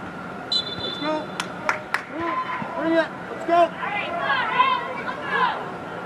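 Young male players shout and call out across a large echoing indoor pitch.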